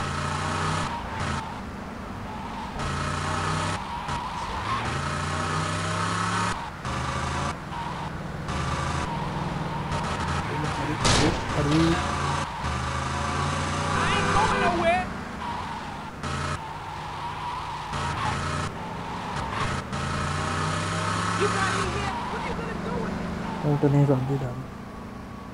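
A car engine hums and revs as the car drives along.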